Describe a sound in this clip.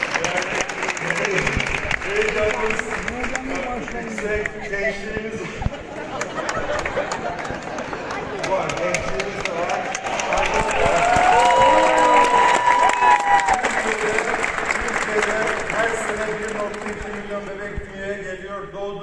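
A crowd of men and women sings along together.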